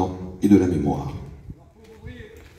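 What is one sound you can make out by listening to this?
A man speaks into a microphone over a loudspeaker outdoors.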